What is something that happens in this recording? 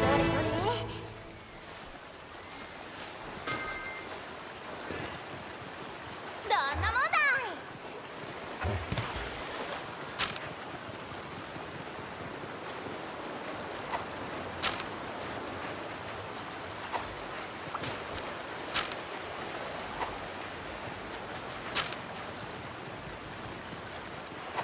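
Rushing water splashes steadily.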